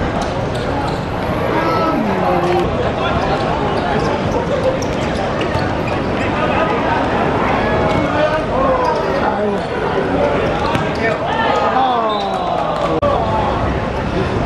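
A crowd of men shouts and cheers from the sidelines outdoors.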